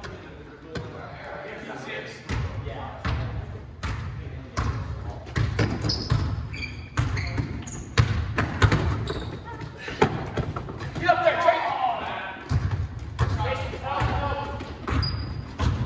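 Young men call out to each other during a game, echoing in a large hall.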